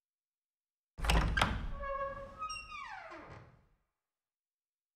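Heavy wooden doors bang and creak open in a large echoing hall.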